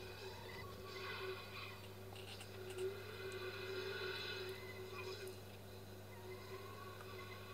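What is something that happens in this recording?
A car engine roars past.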